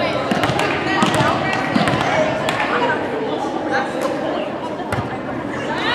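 A volleyball is struck with sharp slaps in an echoing gym.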